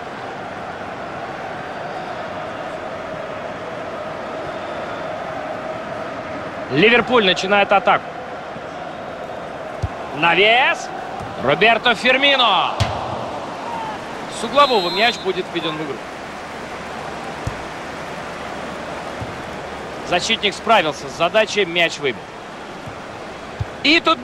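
A stadium crowd murmurs steadily in the distance.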